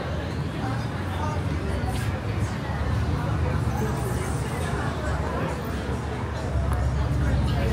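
A car engine hums nearby.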